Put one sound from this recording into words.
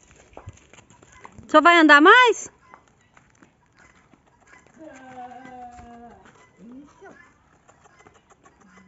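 A horse's hooves clop slowly on hard ground.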